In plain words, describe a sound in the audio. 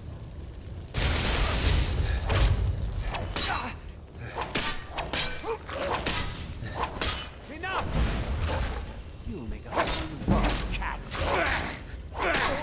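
A sword swings and strikes with sharp whooshes and hits.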